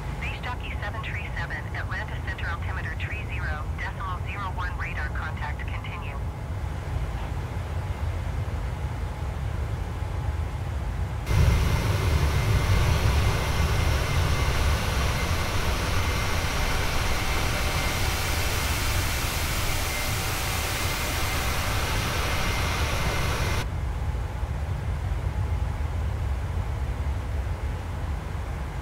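A jet engine drones low and steady, muffled as if heard from inside a cockpit.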